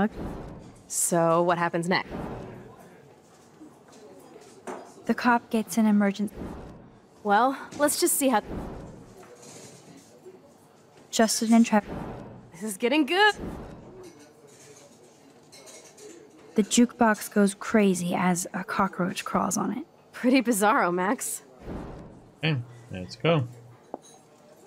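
A young woman answers in a lively, teasing voice.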